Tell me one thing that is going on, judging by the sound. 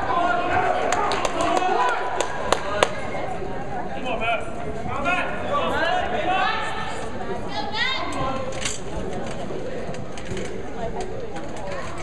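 A crowd of men and women talks and chatters in a large echoing gym.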